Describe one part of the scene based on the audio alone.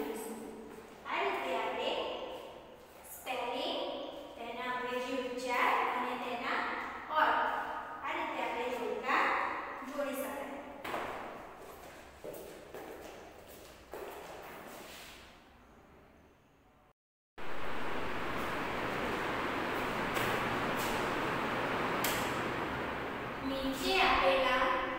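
A young girl speaks clearly and steadily, as if teaching, in a slightly echoing room.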